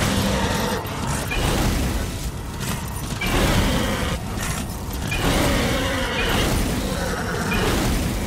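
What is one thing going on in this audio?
Flames roar and crackle behind a galloping horse.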